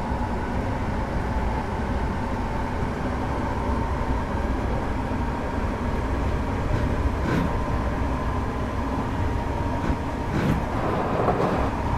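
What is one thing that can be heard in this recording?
An electric motor whines with a steady high hum.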